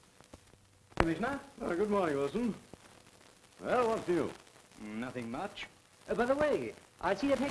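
A middle-aged man speaks firmly and with emotion, close by.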